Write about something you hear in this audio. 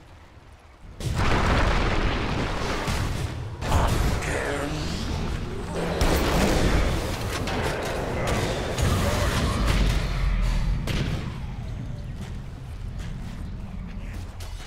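Game spells and blows clash loudly in a fight.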